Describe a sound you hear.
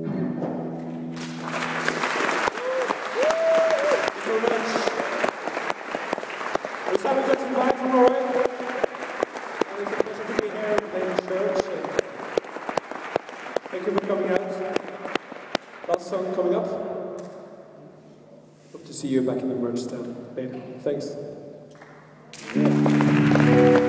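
A live rock band plays loudly in a large echoing hall.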